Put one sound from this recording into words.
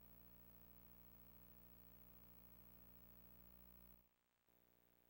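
Faint electronic game music plays steadily, then cuts off.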